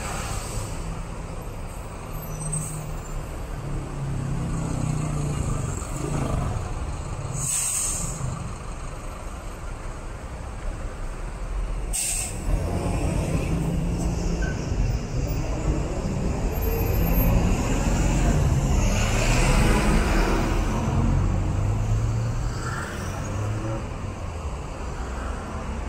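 Car engines hum as cars pass close by.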